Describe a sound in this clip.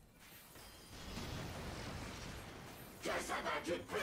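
A loud magical blast booms and rumbles.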